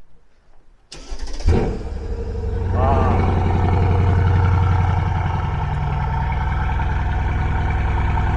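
A car engine starts up and rumbles deeply.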